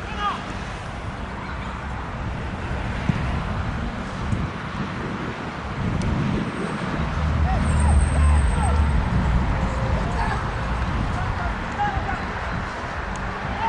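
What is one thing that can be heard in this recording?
Wind rumbles across an open field outdoors.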